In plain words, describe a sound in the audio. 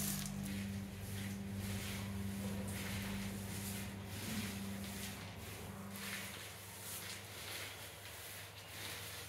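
Hands rustle and crunch through dry food, mixing it.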